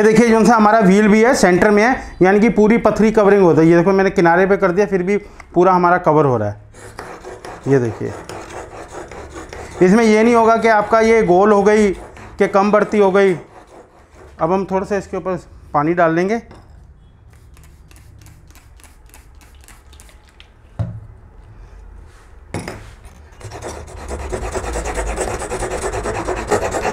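A steel blade scrapes back and forth on a sharpening stone.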